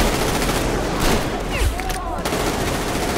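Gunshots crack in a short burst.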